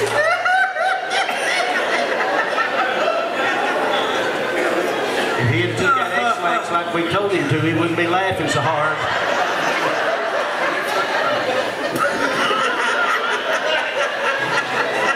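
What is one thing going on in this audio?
A fiddle plays a lively tune.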